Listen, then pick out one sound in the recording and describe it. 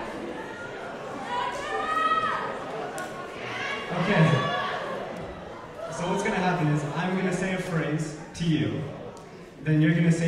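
A young man speaks into a microphone through loudspeakers in a large echoing hall.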